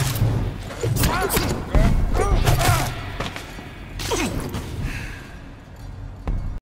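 Sharp blade slashes and heavy hits land in a fight.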